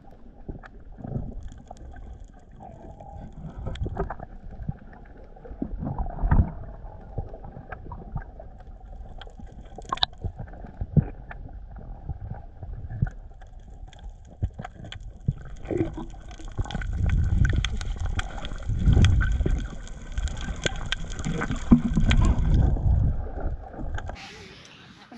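Bubbles crackle and pop underwater.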